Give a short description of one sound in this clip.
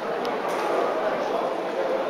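A crowd of people murmurs and chatters in the background.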